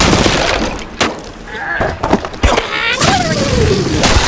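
Wooden blocks crash and clatter as a structure collapses.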